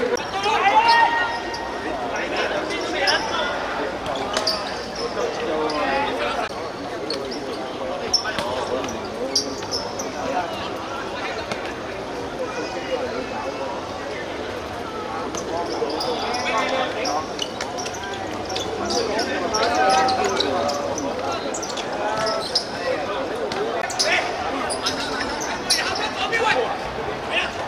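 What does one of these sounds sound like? A futsal ball is kicked on a hard court.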